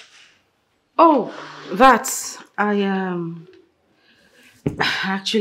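A young woman speaks in surprise nearby.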